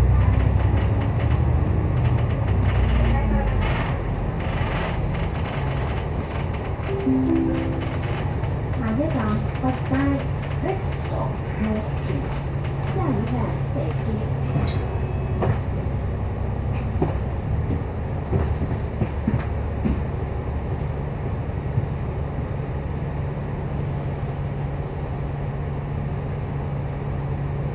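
A tram rumbles steadily along its rails.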